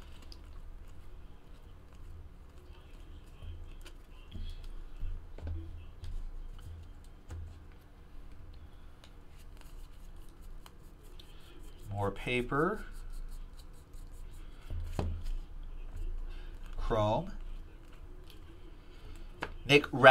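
Trading cards rustle and slide as they are shuffled by hand.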